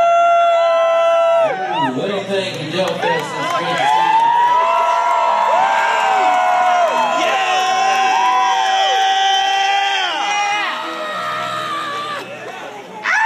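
Acoustic and electric guitars strum and ring out.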